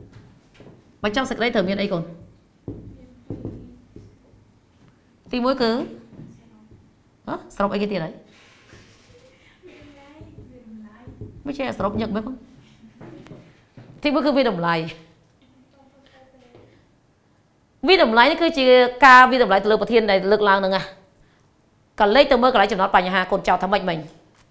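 A woman speaks clearly into a microphone, explaining at a measured pace.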